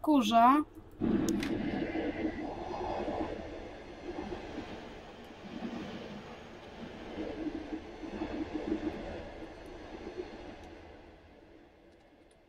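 A passing train rushes and rumbles close by.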